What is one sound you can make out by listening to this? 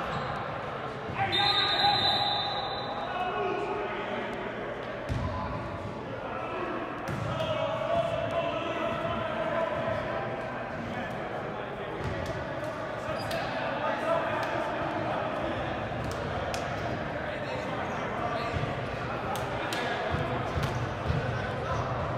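Sneakers squeak and thump on a hardwood court in a large echoing gym.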